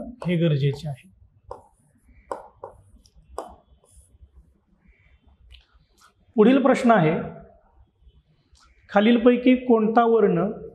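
A man speaks calmly and clearly, like a teacher explaining, close to a microphone.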